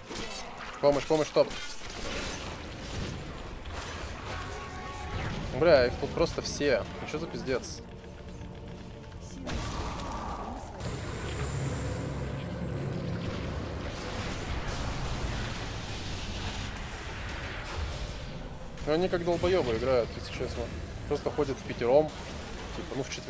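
Game battle effects clash and whoosh.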